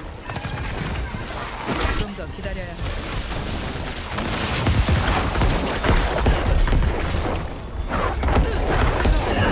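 Magic spells crackle and whoosh in a video game.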